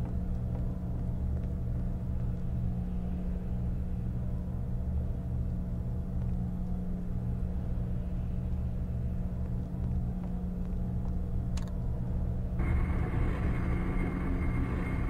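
Electrical equipment hums steadily and low.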